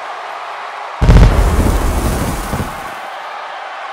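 A loud blast of stage pyrotechnics booms and rumbles.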